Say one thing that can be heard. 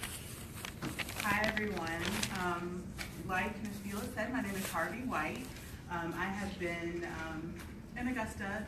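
A middle-aged woman speaks through a microphone.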